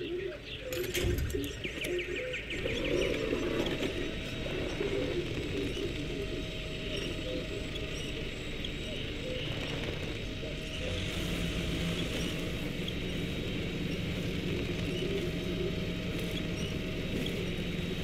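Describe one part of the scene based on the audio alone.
A truck engine rumbles steadily as the truck crawls through mud.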